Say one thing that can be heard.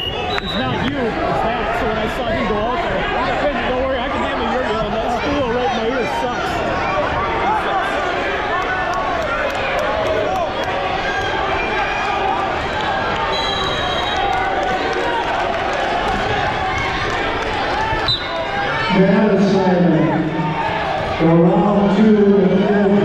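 A crowd chatters and calls out throughout a large echoing gym.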